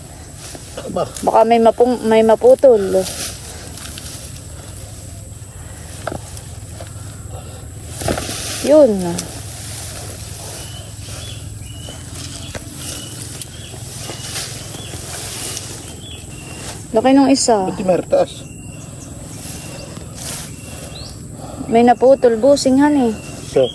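A man speaks in short bursts close by.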